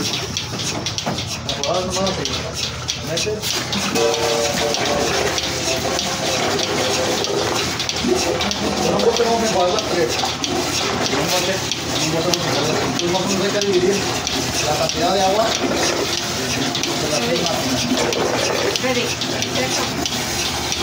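Several men talk and chatter nearby in a noisy crowd.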